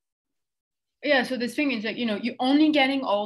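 A young woman speaks over an online call.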